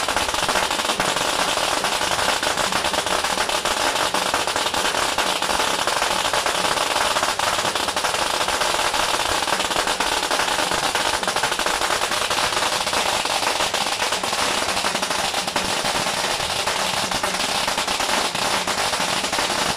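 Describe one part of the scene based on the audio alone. Brass cymbals clash loudly and rapidly, over and over.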